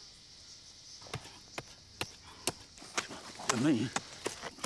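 Twigs and dry leaves crackle on the ground as men scramble.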